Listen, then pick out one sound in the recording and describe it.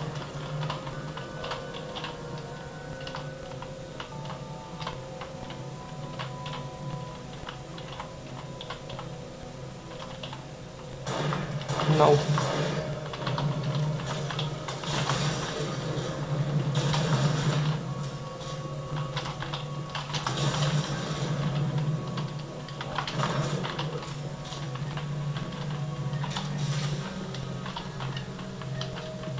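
Game sounds of gunfire and explosions play through small desktop speakers.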